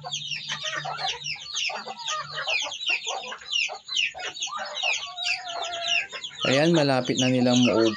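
Birds peck at soft fruit on a hard floor.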